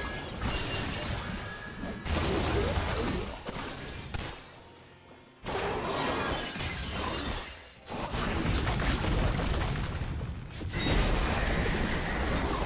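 Magic spells whoosh and crackle during a battle.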